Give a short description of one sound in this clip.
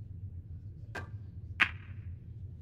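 Pool balls clack against each other.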